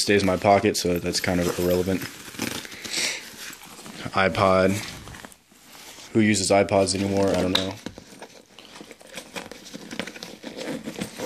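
Fabric rustles as hands handle a bag.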